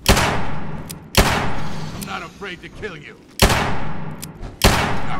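Loud rifle shots boom one after another, each trailing off in a long echo.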